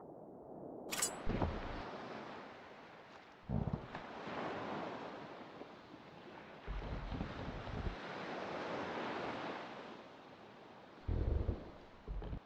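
Ocean waves wash and splash steadily around a raft.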